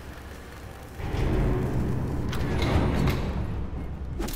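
A heavy machine rumbles and clanks as a lever is pulled.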